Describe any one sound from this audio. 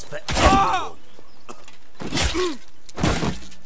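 A man grunts and shouts with effort close by.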